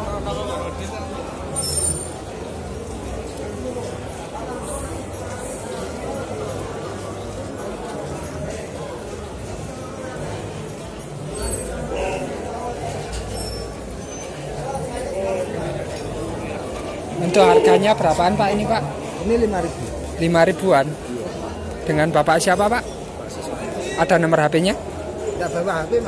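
A crowd murmurs outdoors in the background.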